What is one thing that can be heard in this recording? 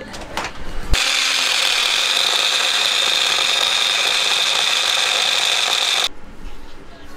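A small blender whirs loudly.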